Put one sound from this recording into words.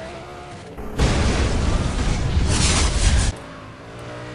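An explosion booms loudly.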